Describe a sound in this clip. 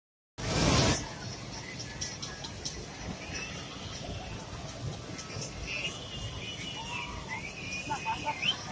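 A crowd murmurs faintly outdoors.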